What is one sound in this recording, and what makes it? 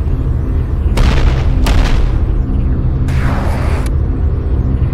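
A revolver fires loud shots.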